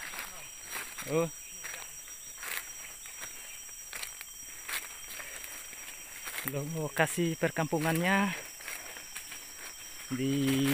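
A man calls out loudly nearby outdoors.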